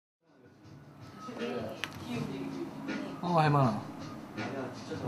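A young man speaks calmly on a phone nearby.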